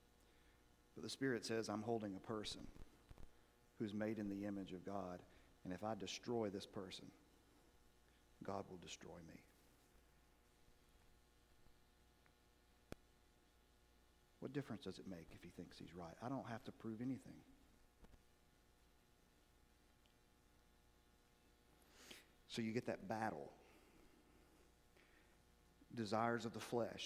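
A middle-aged man speaks calmly into a microphone in a large echoing hall, with long pauses.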